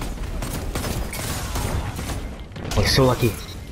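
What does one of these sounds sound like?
Gunfire rattles in a video game.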